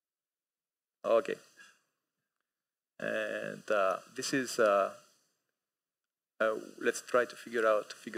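A man speaks calmly through a microphone in a large hall, in short bursts with pauses.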